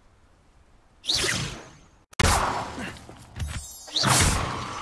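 A magic spell whooshes and crackles in bursts.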